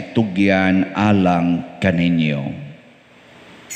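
An older man chants in a slow sung tone through a microphone.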